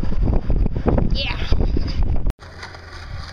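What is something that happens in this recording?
A boy talks close by, outdoors in wind.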